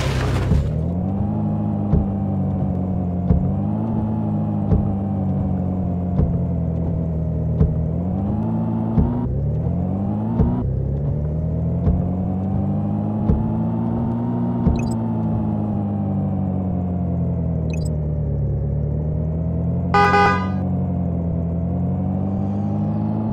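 A small hatchback car engine accelerates, its pitch rising and dropping as it shifts gears.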